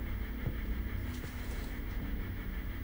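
Heavy curtains swish as they are pulled apart.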